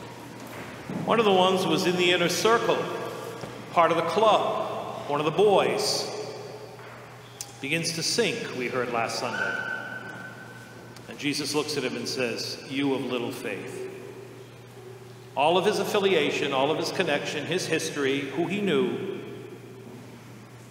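A middle-aged man speaks calmly into a microphone in a large echoing hall.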